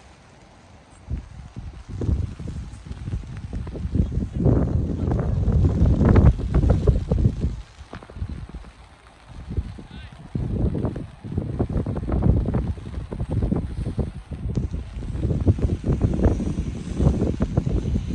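Wind gusts roar against the microphone outdoors.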